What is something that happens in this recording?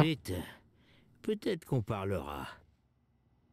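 A man speaks calmly in a low voice.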